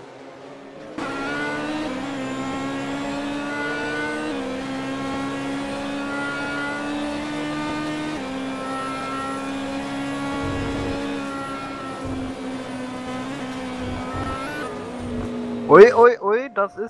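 A racing car engine hums steadily from inside the car, shifting through gears.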